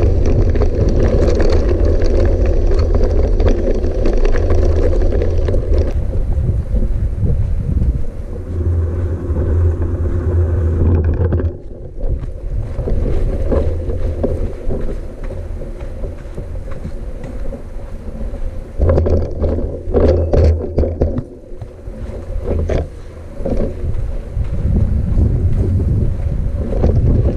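A motorbike engine rumbles and revs up and down.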